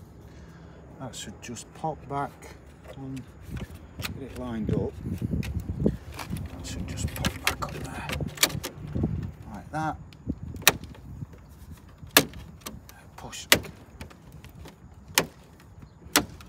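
A plastic tool clicks and snaps as it pries at a car badge.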